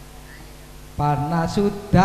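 A man talks loudly into a microphone over loudspeakers.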